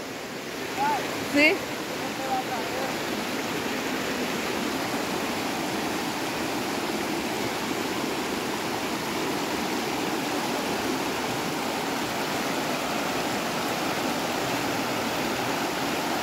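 A shallow river rushes and gurgles over rocks.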